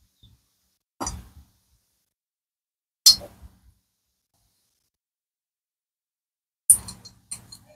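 Metal parts clink and knock against each other.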